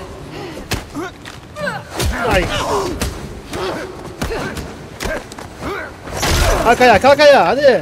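Punches thud in a scuffle.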